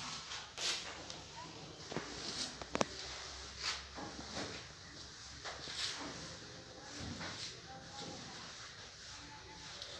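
Chalk rubs on a blackboard as a man wipes it.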